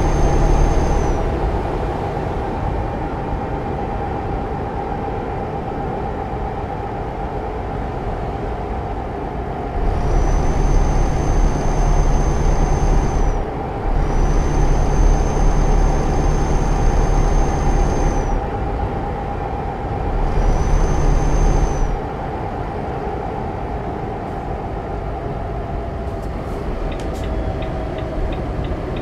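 Tyres roar on a motorway.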